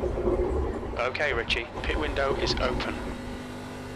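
A man speaks animatedly into a close microphone.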